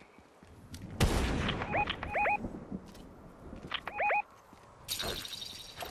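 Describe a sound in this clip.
Gunshots crack in short quick bursts.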